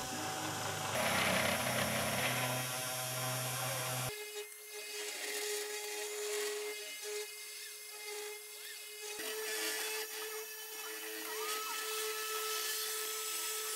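A milling machine whirs steadily as its spinning bit cuts into wood.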